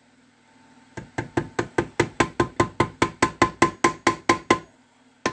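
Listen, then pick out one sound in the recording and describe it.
A hammer taps rapidly and steadily on a metal housing, ringing briefly with each blow.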